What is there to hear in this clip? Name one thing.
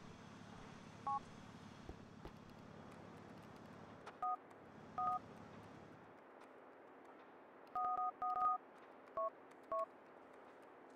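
A mobile phone beeps in short electronic tones.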